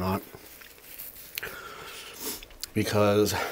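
A paper napkin rustles as a man wipes his mouth.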